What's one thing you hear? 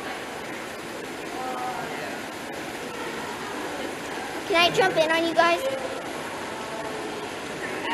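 Water churns and bubbles in a hot tub.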